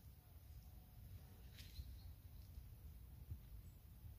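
Water birds call briefly from the water.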